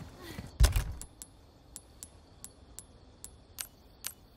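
Short menu selection clicks tick in a video game inventory.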